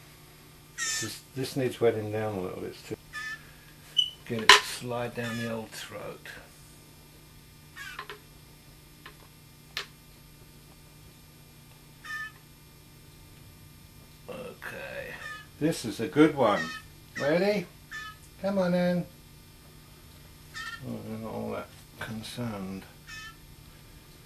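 An older man talks calmly and softly, close by.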